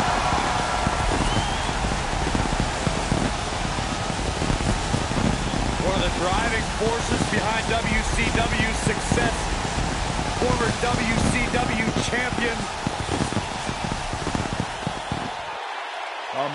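Fireworks hiss and crackle loudly.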